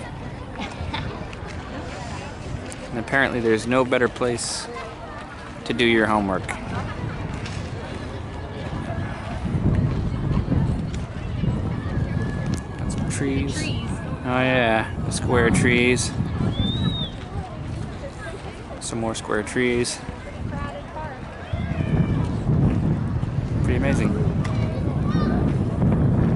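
A crowd of people chatters outdoors, with voices near and far.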